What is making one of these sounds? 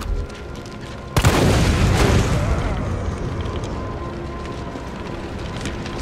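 Flames roar and crackle nearby.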